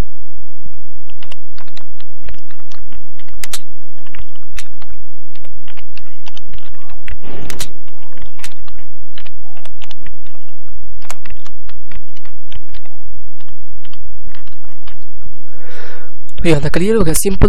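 Keys on a keyboard click rapidly as someone types.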